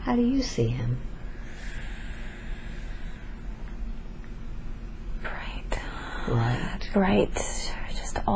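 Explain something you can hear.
A woman murmurs sleepily close by.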